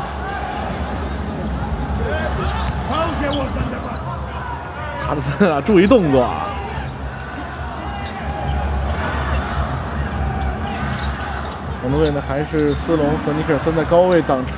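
A large indoor crowd roars and cheers, echoing in a big hall.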